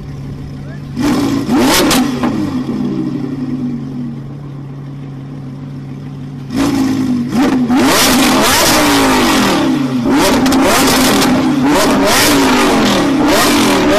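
A sports car engine revs hard in loud roaring bursts.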